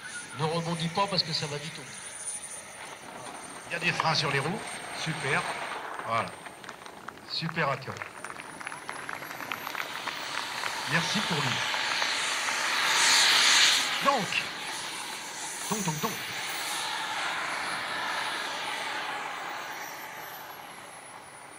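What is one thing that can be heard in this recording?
A model jet engine whines steadily with a high pitch and swells to a roar.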